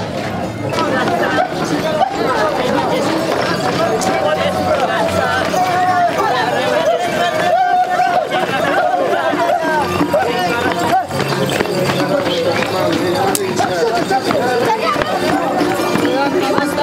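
Many feet stamp and shuffle on a road.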